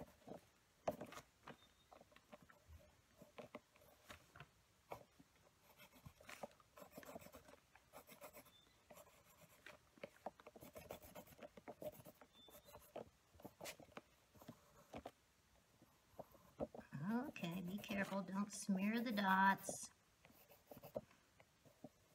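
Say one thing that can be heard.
A pen scratches and taps softly on paper.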